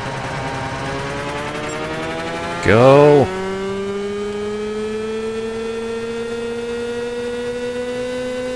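A small kart engine buzzes steadily and rises slowly in pitch as it speeds up.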